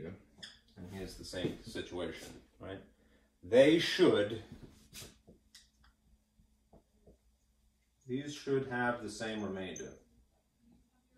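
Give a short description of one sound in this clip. A man speaks calmly nearby, explaining in short bursts with pauses.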